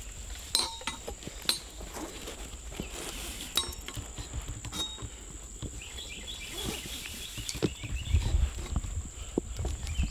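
Climbing gear clanks and scrapes against a tree trunk.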